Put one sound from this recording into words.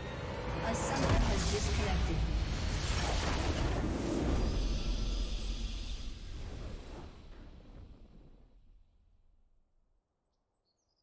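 A game's victory fanfare swells loudly and fades away.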